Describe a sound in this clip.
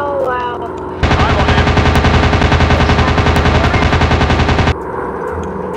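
Machine guns fire in a rapid rattling burst.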